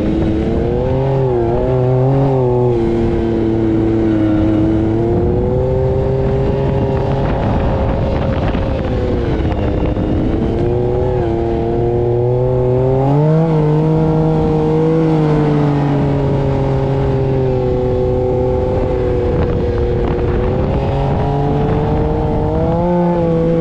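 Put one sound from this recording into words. Wind rushes past in a steady blow.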